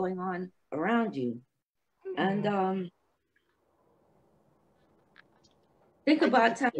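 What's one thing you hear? An elderly woman speaks calmly over an online call, pausing between phrases.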